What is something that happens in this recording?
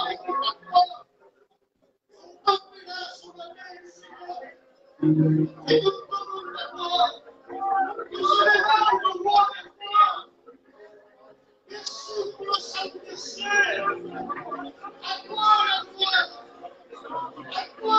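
A crowd of men and women talk and murmur nearby.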